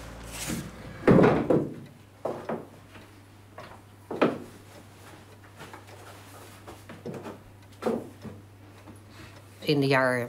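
Objects knock and clatter.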